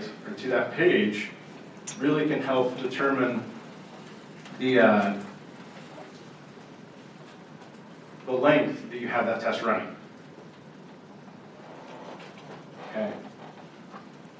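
A man speaks calmly into a microphone in a large room, in short phrases with pauses.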